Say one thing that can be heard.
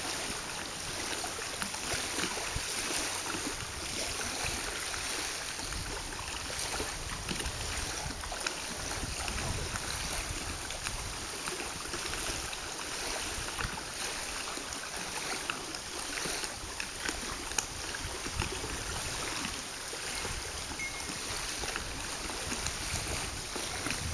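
Small waves lap gently against the shore.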